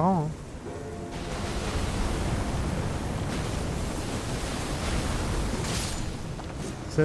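Magic bolts crash down with a rushing roar.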